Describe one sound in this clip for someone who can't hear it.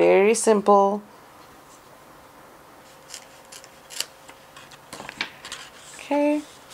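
Sheets of paper rustle and slide against each other.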